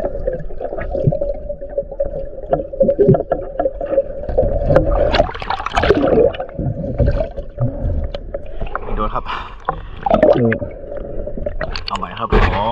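Water splashes and gurgles close by, sounding muffled at times as if heard from under the surface.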